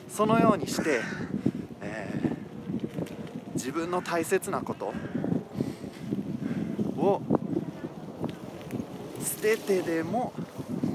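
A young man talks with animation close to the microphone, outdoors.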